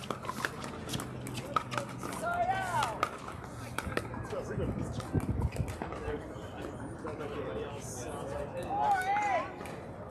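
Paddles pop sharply against a plastic ball in a quick rally.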